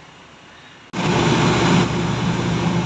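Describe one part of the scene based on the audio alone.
A car engine roars with road noise while driving.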